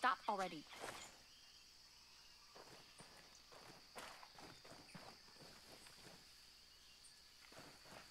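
Footsteps rustle through dense undergrowth.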